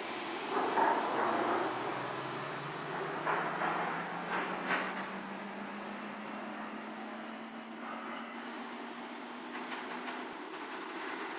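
A train rumbles away along the tracks and fades.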